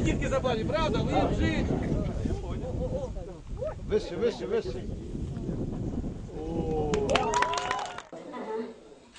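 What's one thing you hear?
A crowd of men and women talks loudly outdoors.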